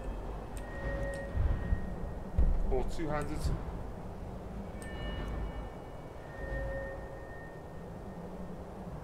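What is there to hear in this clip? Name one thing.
A game menu chimes softly as selections change.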